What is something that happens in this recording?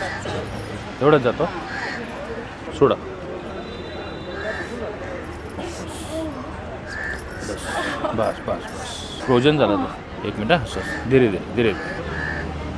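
A middle-aged woman cries out in pain.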